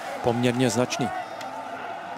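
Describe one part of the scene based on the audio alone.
A large crowd cheers and shouts outdoors in the distance.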